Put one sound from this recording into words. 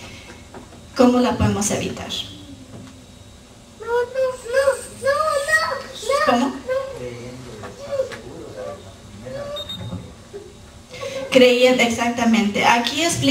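A woman speaks calmly through a microphone, her voice carried over loudspeakers in a large room.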